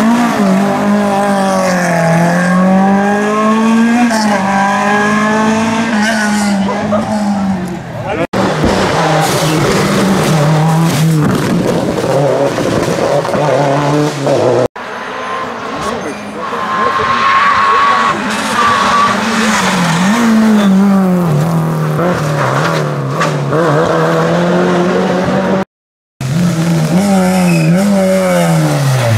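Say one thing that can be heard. A rally car engine revs hard and changes gear as the car speeds past.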